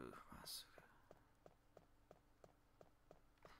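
Footsteps tap steadily on a wooden floor.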